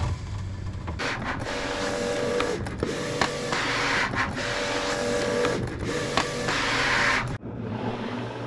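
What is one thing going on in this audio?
A cutting machine whirs as it feeds a sheet of vinyl.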